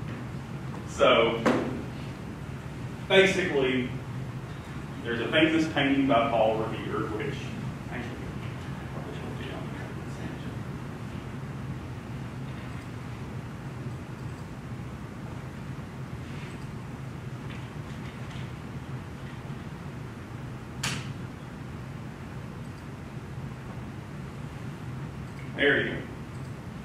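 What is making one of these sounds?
A man speaks in short bursts in a large room, heard from a distance.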